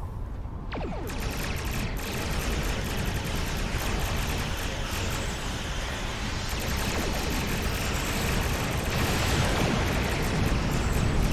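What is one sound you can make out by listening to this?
Explosions crackle loudly.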